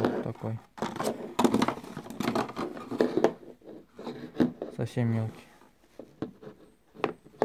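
A plastic part knocks and taps against a hard plastic surface.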